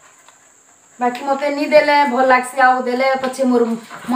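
A middle-aged woman speaks close by.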